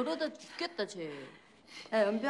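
A young woman cries out in pain.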